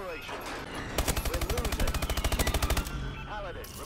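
A rapid-firing gun fires a long burst.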